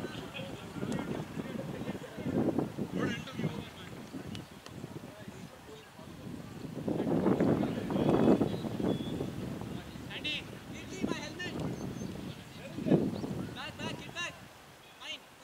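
Men call out and talk to each other outdoors at a distance.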